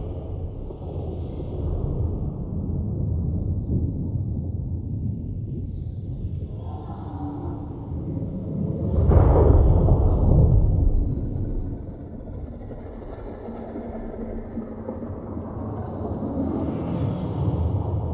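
Fires crackle and roar low and steady.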